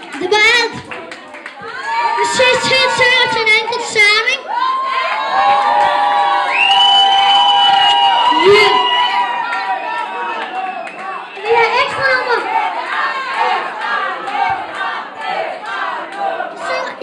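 A young boy raps loudly through a microphone and loudspeakers.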